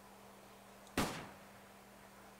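A revolver fires a single loud shot.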